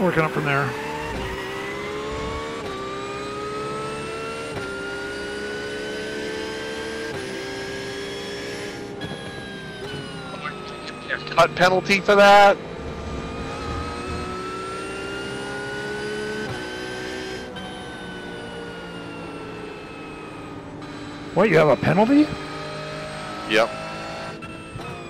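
A racing car engine drones steadily, rising in pitch and dropping with each gear change.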